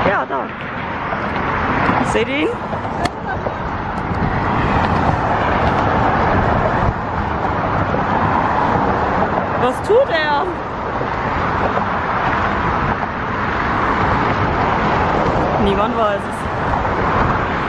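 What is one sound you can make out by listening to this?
Traffic roars past steadily on a busy road.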